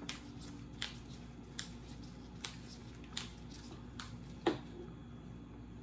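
Rose petals rustle softly as they are plucked.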